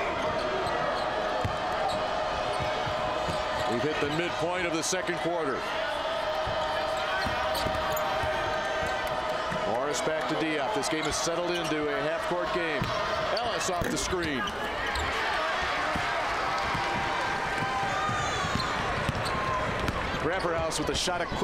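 A basketball bounces with hollow thuds on the floor.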